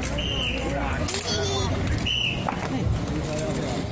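Rifles clack and rattle as they are spun and caught.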